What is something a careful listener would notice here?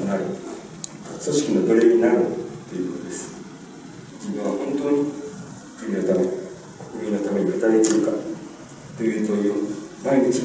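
A middle-aged man speaks calmly into a microphone, reading out a statement.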